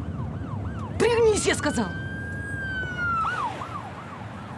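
A police siren wails briefly nearby.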